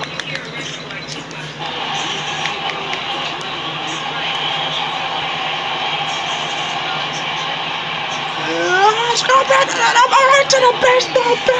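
A crowd cheers and roars steadily through a television speaker.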